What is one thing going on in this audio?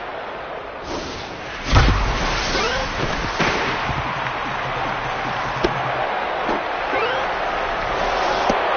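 A stadium crowd cheers and roars steadily.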